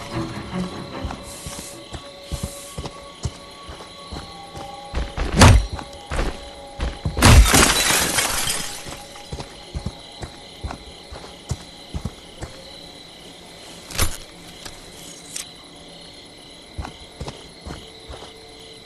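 Heavy footsteps crunch on leaves and grass.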